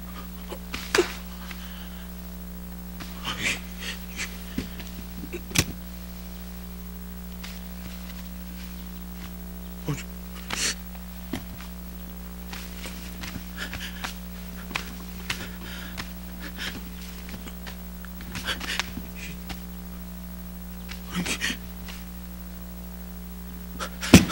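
A man rummages through clothes in a metal trunk, with soft rustling and knocks.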